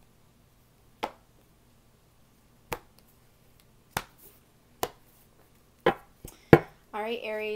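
Cards tap and snap onto a table close by.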